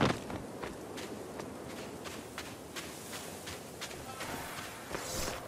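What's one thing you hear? Footsteps tread slowly on soft ground.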